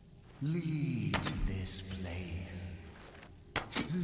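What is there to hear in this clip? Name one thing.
A bow string twangs as an arrow is released.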